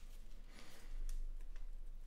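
Playing cards flick and shuffle in hands.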